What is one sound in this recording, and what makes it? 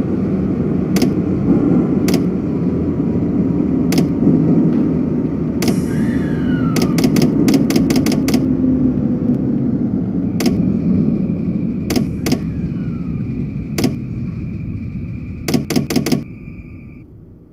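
A train rumbles along the rails and slows to a stop.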